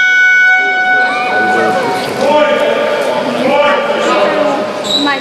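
Young men shout to each other across a large echoing sports hall.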